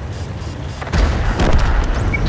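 A shell explosion booms nearby.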